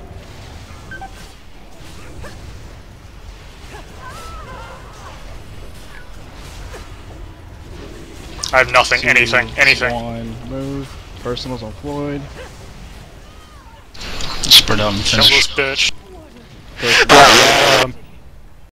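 Magic spells crackle and whoosh in a game.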